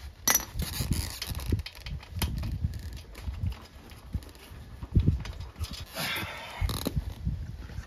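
Metal tools clink and knock against a motorbike engine.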